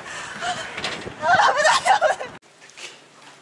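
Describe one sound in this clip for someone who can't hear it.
A young woman calls out cheerfully close by.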